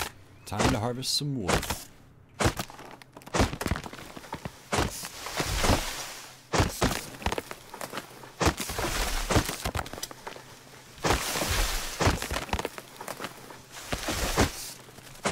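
An axe chops into a tree trunk with repeated hard thuds.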